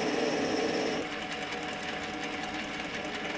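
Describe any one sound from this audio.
An abrasive pad rubs against spinning metal.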